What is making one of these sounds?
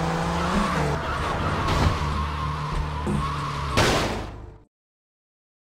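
A car engine roars as a car speeds along.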